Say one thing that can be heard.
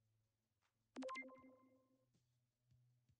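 A short electronic chime rings.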